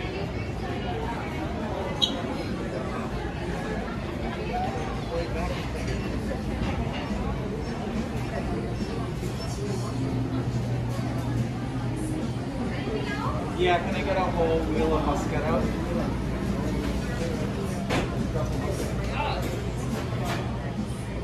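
People murmur and chatter in the background.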